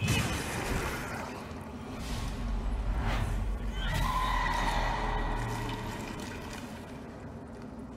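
A spell bursts with a shimmering crackle.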